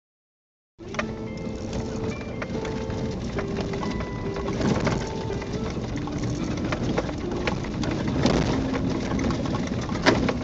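Tyres crunch and rattle over snow and gravel.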